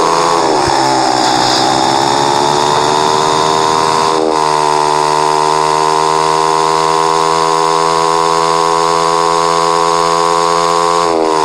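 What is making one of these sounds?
A motorbike engine whines loudly and steadily, shifting pitch once.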